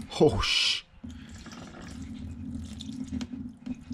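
Liquid trickles steadily into a plastic pan.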